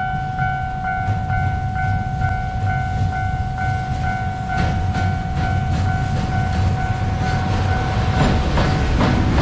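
A level crossing bell rings steadily in a fast repeating pattern.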